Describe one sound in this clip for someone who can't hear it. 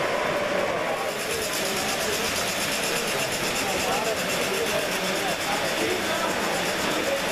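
Toy train wheels click rhythmically over rail joints.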